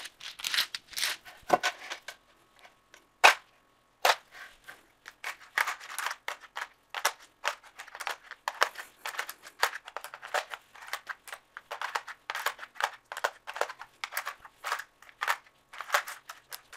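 Plastic tiles click and clack against each other as a hand arranges them.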